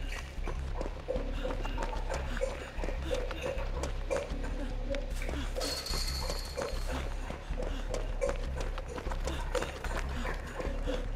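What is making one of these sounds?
Footsteps run quickly over pavement and grass.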